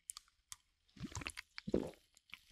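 A man sips from a drink can close to a microphone.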